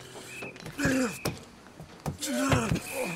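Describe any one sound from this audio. Blows land with dull thuds.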